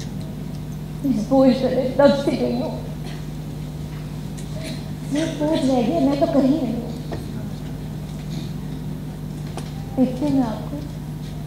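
A young woman speaks with feeling in short bursts, heard from a distance in a hall.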